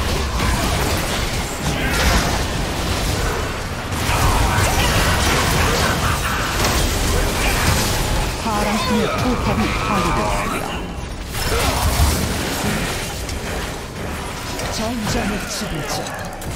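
Spells blast and crackle in a fight.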